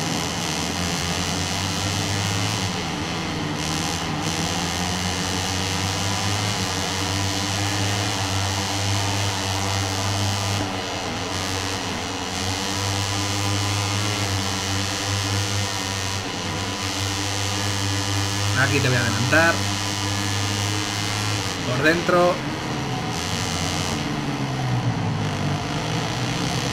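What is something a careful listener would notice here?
Racing motorcycle engines whine and roar steadily.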